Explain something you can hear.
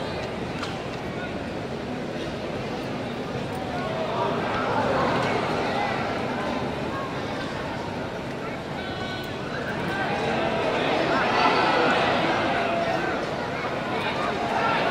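A stadium crowd cheers and chants, swelling at times, in a large open space.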